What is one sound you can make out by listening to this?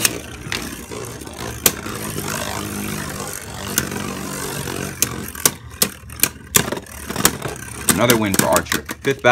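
Spinning tops clack sharply against each other.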